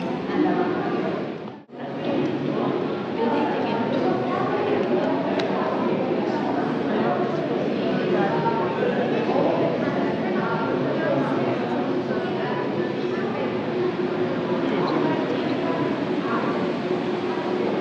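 A crowd of visitors murmurs and chatters in a large echoing hall.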